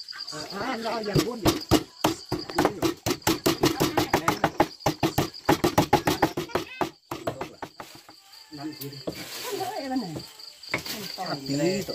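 A knife chops rapidly on a wooden board.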